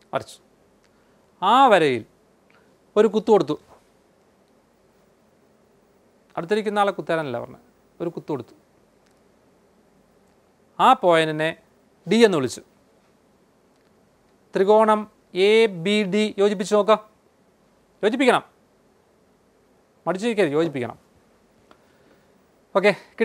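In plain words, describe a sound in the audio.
A man speaks calmly and clearly into a close microphone, in short phrases with pauses.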